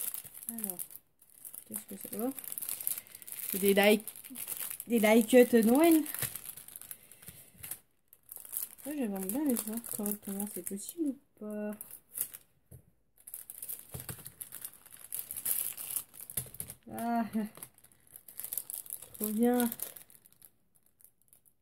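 Paper crinkles and rustles in handling.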